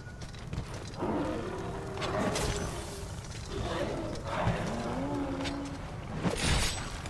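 Large monsters roar and growl.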